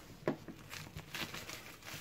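Plastic wrap crinkles under a hand.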